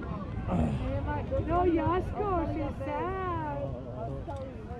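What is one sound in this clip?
A man speaks close by, with animation.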